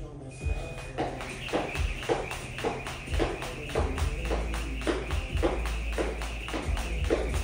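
A jump rope slaps the floor in a quick, steady rhythm.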